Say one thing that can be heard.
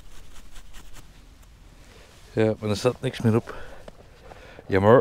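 Gloved fingers crumble and rustle through dry soil close by.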